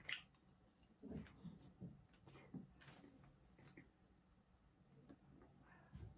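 A young man chews food close by.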